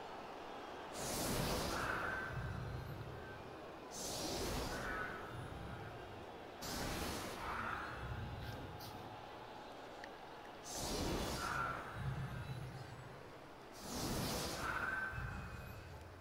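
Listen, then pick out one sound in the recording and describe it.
Magical whooshes sweep past repeatedly.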